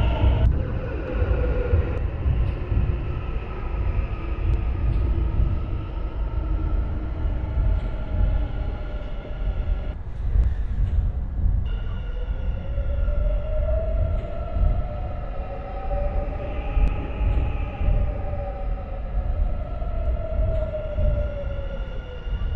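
An electric train's motor whines, rising and falling in pitch.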